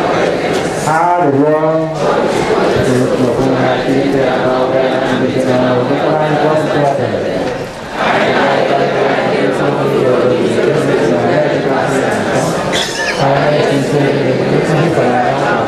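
A large crowd of men and women sings together in a reverberant hall.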